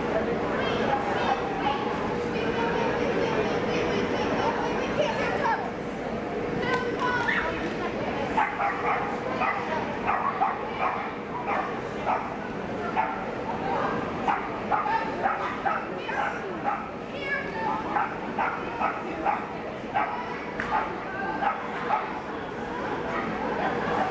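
A woman calls out commands to a dog.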